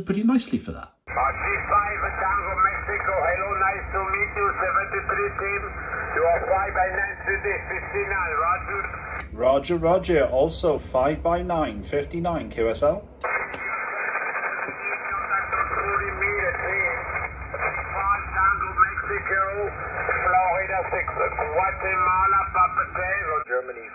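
Men's voices talk through a radio loudspeaker, thin and crackly over a hiss.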